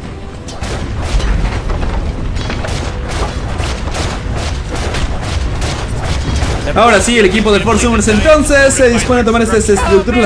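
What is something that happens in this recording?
Magic blasts and hits crackle and thud rapidly in a video game battle.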